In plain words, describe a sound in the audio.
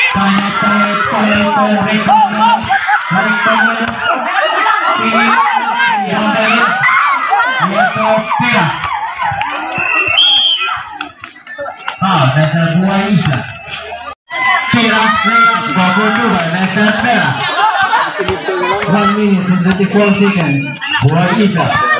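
A crowd of spectators chatters and calls out close by, outdoors.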